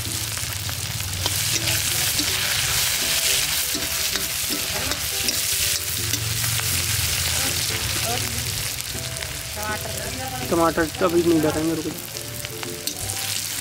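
A metal ladle scrapes and stirs in a wok.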